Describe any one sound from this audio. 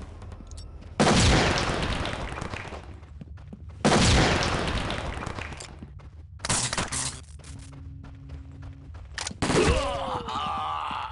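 Gunshots bang loudly in sharp bursts.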